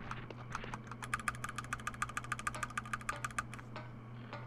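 A game's rapid electronic ticks tally up a score.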